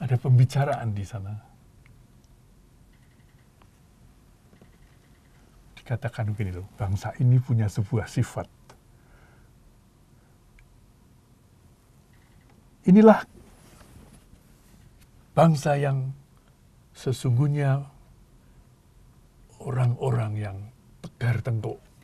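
An elderly man speaks animatedly into a microphone, with pauses.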